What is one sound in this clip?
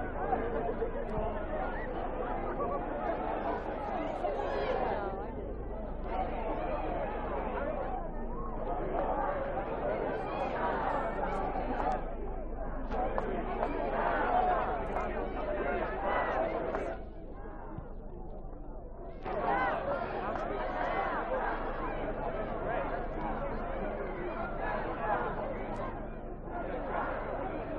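A large crowd of protesters chants loudly in unison outdoors.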